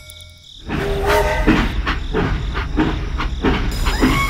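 A toy train rattles along a track.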